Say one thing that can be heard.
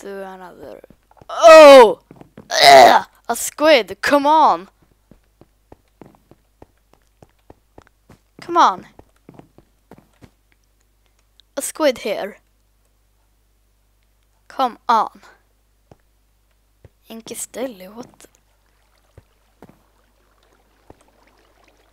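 Footsteps tap steadily on wooden boards.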